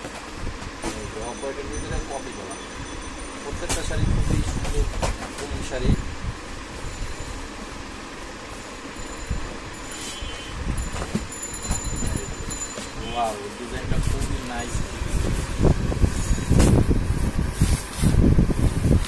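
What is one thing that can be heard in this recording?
Cardboard boxes and paper packaging rustle and thump as they are handled.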